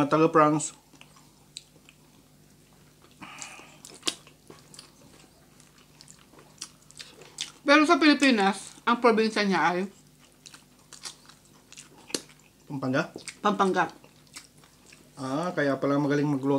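Food is chewed and smacked noisily close to a microphone.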